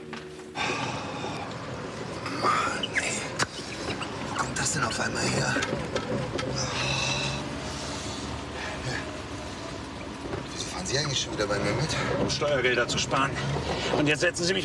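A middle-aged man talks with animation.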